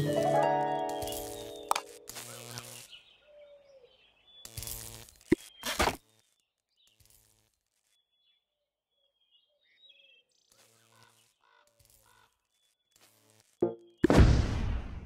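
Game music plays with bright chimes and soft tones.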